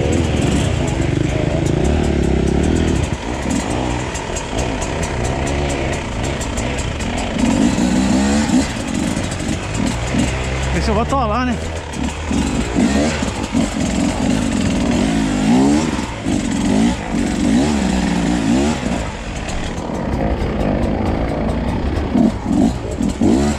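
A dirt bike engine revs and putters up close, rising and falling in pitch.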